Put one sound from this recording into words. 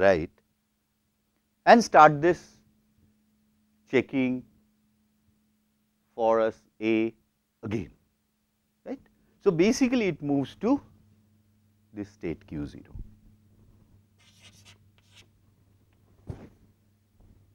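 A middle-aged man speaks calmly through a clip-on microphone in fits and starts.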